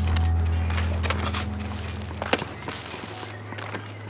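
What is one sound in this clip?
A metal rod scrapes and pokes into dry dirt.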